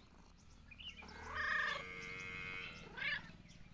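A cat meows loudly, close by.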